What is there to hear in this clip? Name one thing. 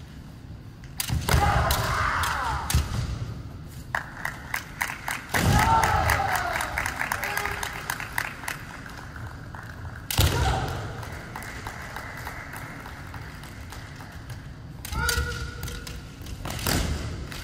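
Feet stamp and slide on a wooden floor.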